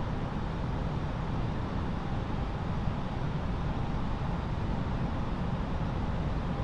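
A steady low engine drone fills an aircraft cockpit.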